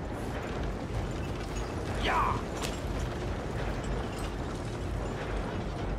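Horse hooves clop past on a street.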